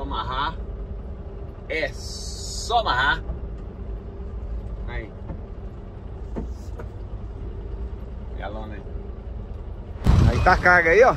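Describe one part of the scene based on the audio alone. A truck engine rumbles low and steady, heard from inside the cab.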